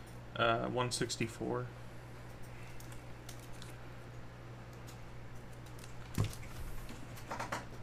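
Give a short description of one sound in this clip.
A plastic card case clicks and taps as hands handle it.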